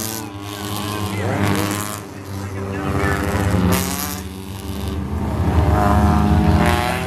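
Race car engines roar loudly as cars speed past, rising and falling in pitch.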